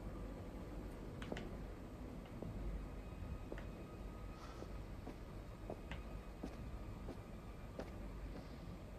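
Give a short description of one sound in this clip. Footsteps knock slowly on a hard floor.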